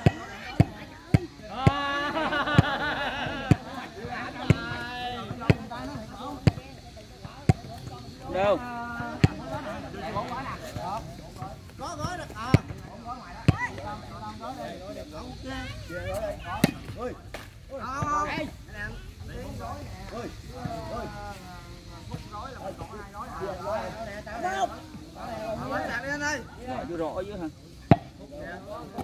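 A foot kicks a ball with sharp thuds.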